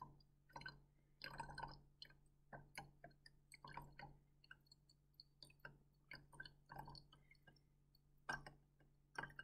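Liquid pours and splashes into a glass flask.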